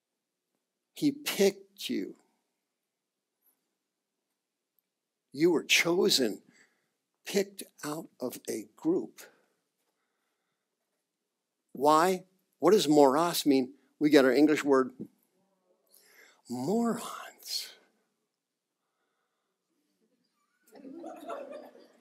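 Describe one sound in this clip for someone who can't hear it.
A man speaks with animation into a microphone, pausing between phrases.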